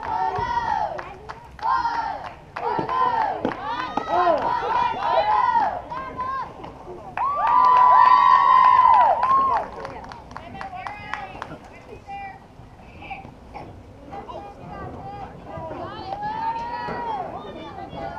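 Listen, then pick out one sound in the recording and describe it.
Young girls cheer and shout in high voices outdoors.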